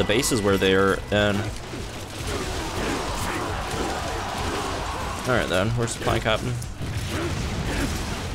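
Swords clash and slash in a noisy battle.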